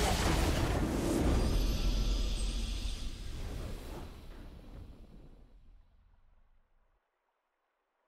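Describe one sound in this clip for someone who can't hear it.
A triumphant fanfare swells and then fades away.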